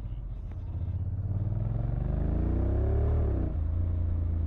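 A motorcycle engine revs up and then drops back.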